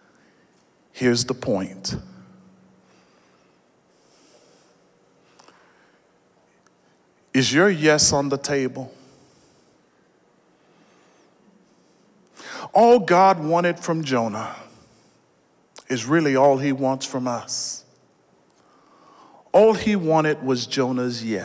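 A man preaches with animation into a microphone, in loud bursts with pauses, in a large echoing hall.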